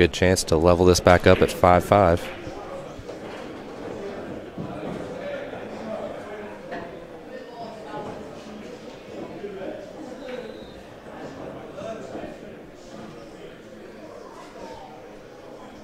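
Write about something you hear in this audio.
Footsteps shuffle softly on a wooden floor.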